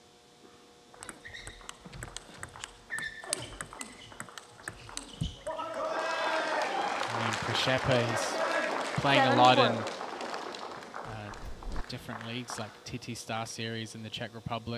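A table tennis ball clicks sharply back and forth off paddles and a table in a quick rally.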